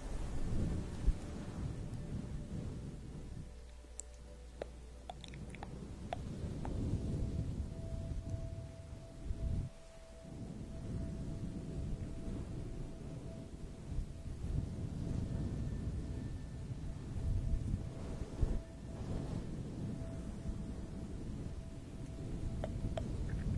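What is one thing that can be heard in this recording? Long fingernails tap and click lightly close to a microphone.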